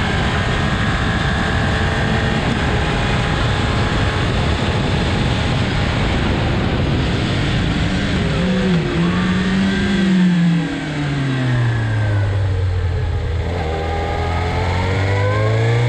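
A motorcycle engine roars at high speed, then drops in pitch as the rider shifts down and slows.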